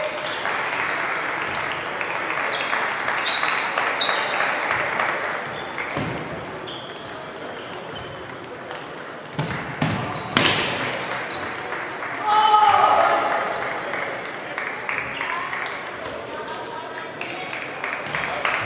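Table tennis balls click on tables and bats throughout a large echoing hall.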